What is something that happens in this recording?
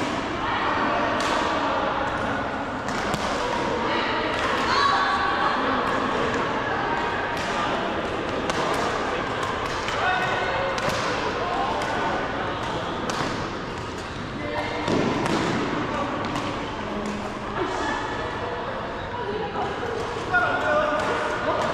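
Shuttlecocks are struck with sharp pops of rackets.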